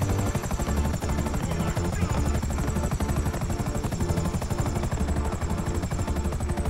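A helicopter's rotor blades chop rapidly and steadily overhead.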